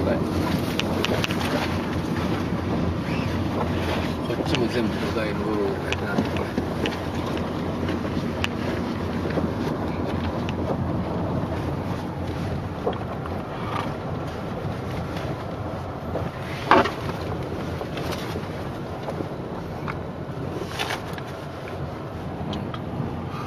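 Tyres rumble over a rough, gravelly road.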